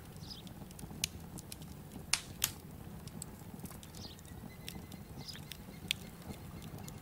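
Menu clicks tick now and then.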